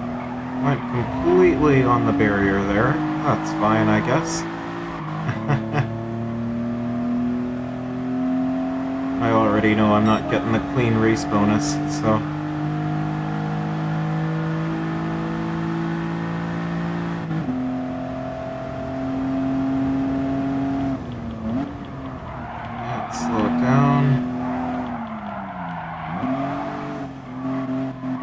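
A car engine revs high and shifts through the gears as it speeds along.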